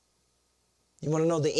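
An older man speaks loudly with animation.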